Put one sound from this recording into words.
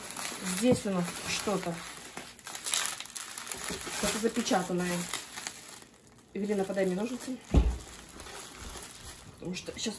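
Bubble wrap crinkles as a package is handled.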